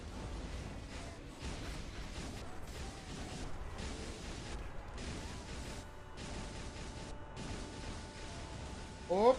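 Video game battle effects whoosh and crackle.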